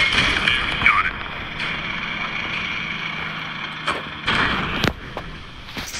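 A tank cannon fires with sharp bangs.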